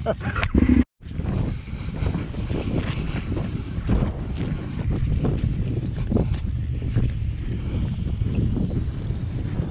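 Wind rumbles and buffets against a microphone outdoors.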